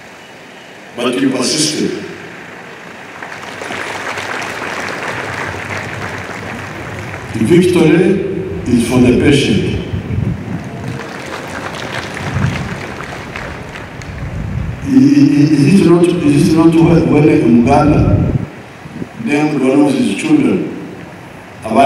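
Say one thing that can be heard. An elderly man speaks slowly into a microphone over a loudspeaker, echoing outdoors.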